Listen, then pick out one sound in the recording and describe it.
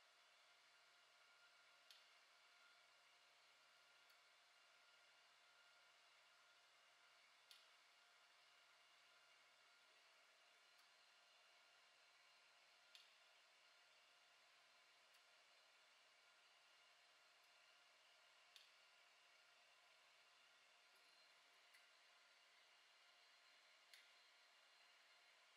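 A desktop 3D printer runs, its stepper motors whining as the print bed moves.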